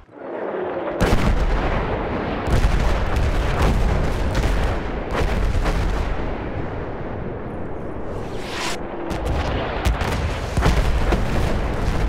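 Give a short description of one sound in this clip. Explosions rumble and crack in the distance.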